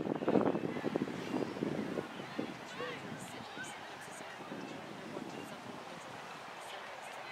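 Distant young women shout to each other across an open field outdoors.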